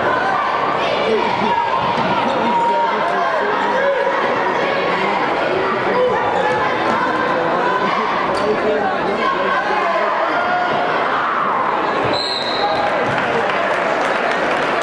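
Sneakers squeak sharply on a floor.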